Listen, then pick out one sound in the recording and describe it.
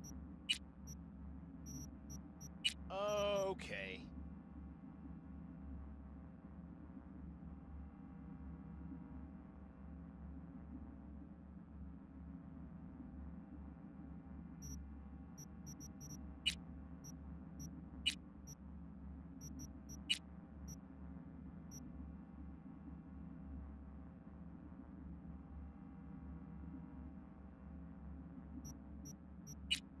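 Menu sounds click and chime as selections change.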